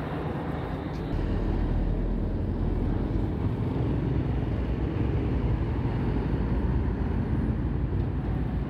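A heavy truck rumbles past nearby.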